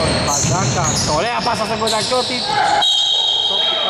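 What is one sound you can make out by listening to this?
Sneakers squeak sharply on a gym floor in an echoing hall.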